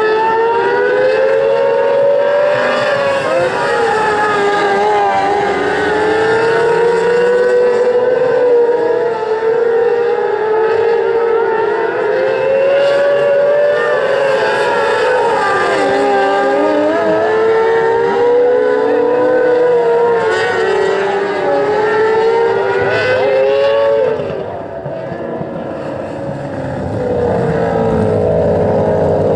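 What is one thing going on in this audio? Several race car engines roar and whine loudly.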